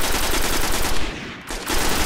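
A rifle fires rapidly.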